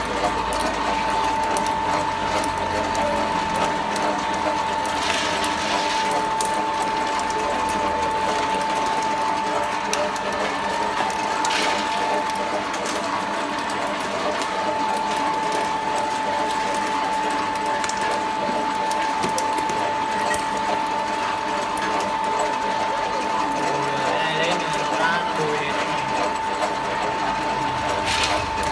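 A belt-driven screw oil press runs with a steady mechanical whine and hum.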